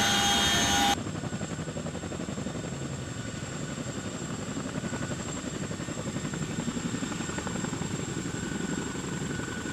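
A helicopter's rotors thump and whine steadily from a short distance outside.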